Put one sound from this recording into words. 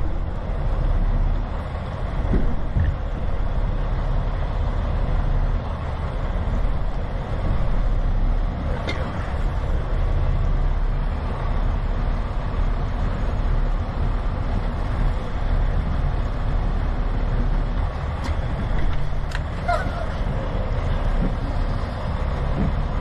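Rain patters steadily outside.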